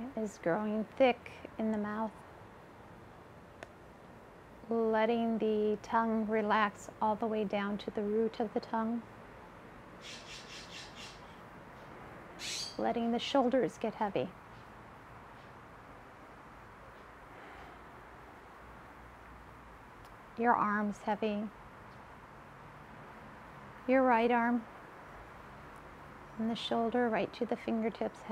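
A woman speaks calmly and slowly, in short phrases with pauses, close to a microphone.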